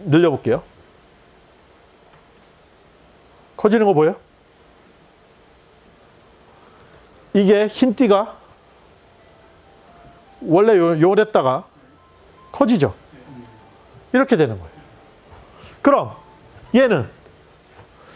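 A man speaks calmly in short bursts, explaining.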